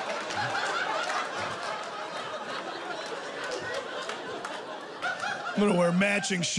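A crowd laughs and applauds in a large room.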